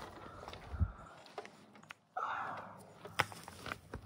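Footsteps crunch on dry gravel and leaves.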